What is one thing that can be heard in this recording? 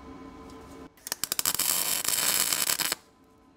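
A welder crackles and sizzles loudly.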